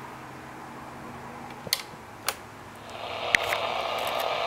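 A switch clicks as a radio is turned on.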